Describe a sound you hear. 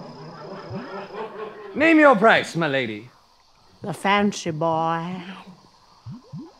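An elderly woman speaks in a high, wavering, theatrical voice.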